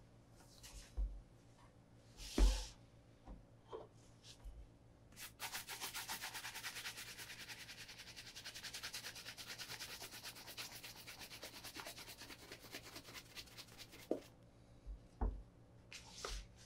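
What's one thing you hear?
A shoe knocks down onto a wooden table.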